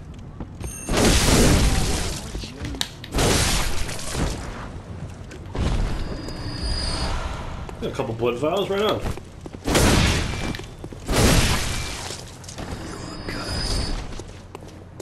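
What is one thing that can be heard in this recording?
Heavy weapon blows land with loud crashing thuds.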